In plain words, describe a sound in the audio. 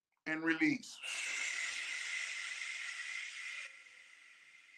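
A man breathes out slowly and audibly through his mouth.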